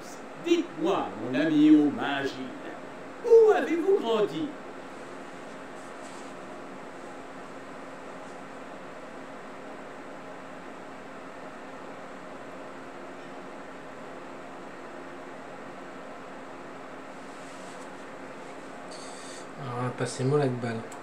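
A middle-aged man talks calmly into a microphone, close by.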